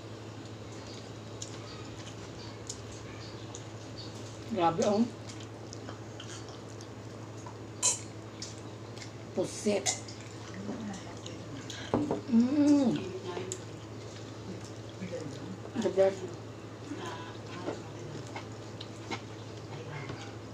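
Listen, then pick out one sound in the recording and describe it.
Two young women chew and smack their lips close to a microphone.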